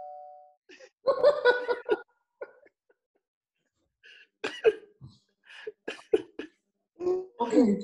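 Several men laugh loudly over an online call.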